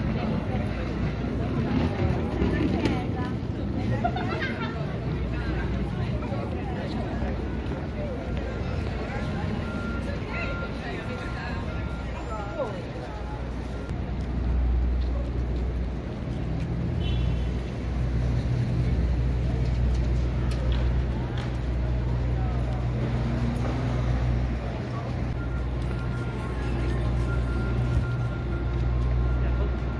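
Traffic rumbles steadily along a busy city street.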